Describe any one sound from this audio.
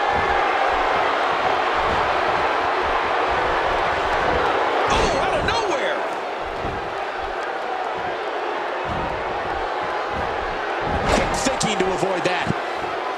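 A large crowd roars steadily in a big arena.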